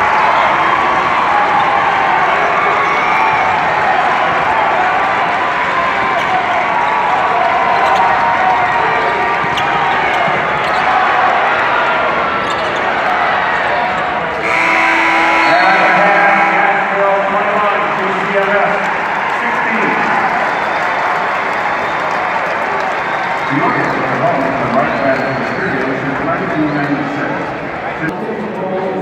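A large crowd cheers and chatters, echoing through a big indoor arena.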